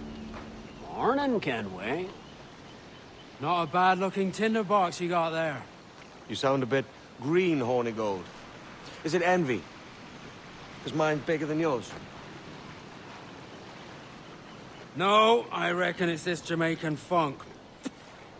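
A man speaks in a calm, low voice, close by.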